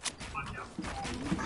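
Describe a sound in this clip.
Wooden walls go up with quick hammering knocks.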